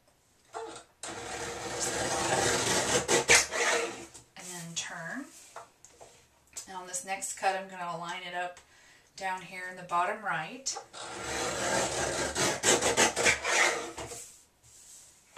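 Paper slides and rustles across a cutting board.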